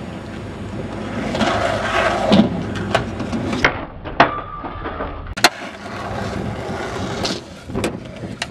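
Skateboard wheels roll and rumble over rough pavement.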